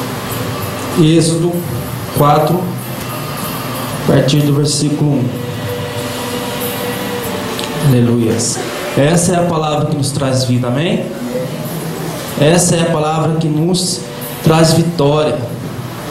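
A man speaks with animation into a microphone, heard through loudspeakers in an echoing room.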